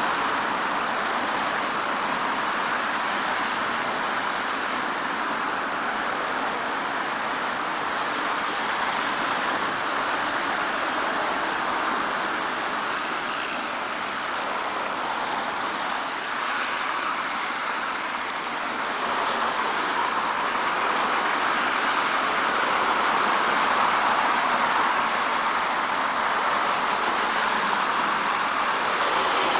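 Road traffic rushes past steadily nearby.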